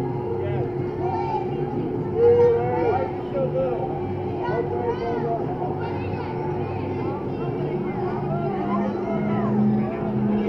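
A crowd of riders screams and shouts from high above.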